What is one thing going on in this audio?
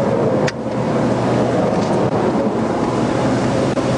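A truck roars past on a nearby highway.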